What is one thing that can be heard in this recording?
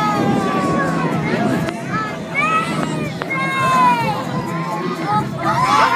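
Young people scream loudly on a thrill ride high overhead.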